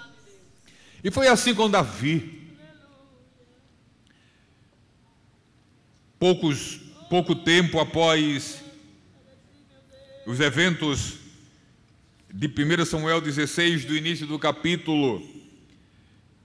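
A middle-aged man reads aloud calmly through a microphone, in a room with some echo.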